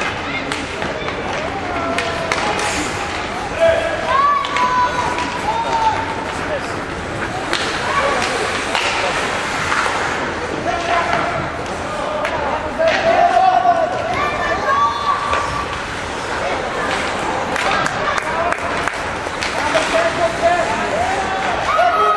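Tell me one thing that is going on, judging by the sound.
Young children shout across a large echoing rink.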